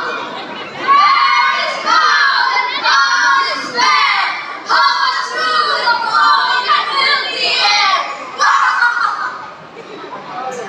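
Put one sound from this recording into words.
Young performers sing through loudspeakers in a large hall.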